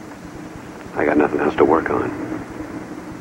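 A middle-aged man speaks calmly and firmly close by.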